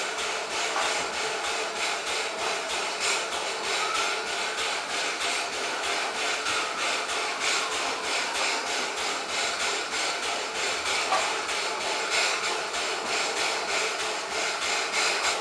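A steam locomotive chuffs in rapid, rhythmic bursts close by.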